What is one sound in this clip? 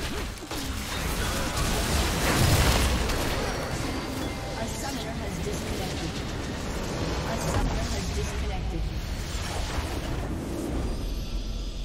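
Spell blasts and magical effects crackle and boom in a busy fight.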